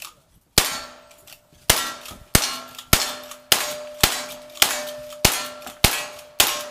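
A rifle fires loud shots in quick, steady succession outdoors.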